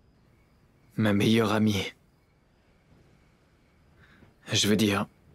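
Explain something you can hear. A young man talks calmly on a phone, close by.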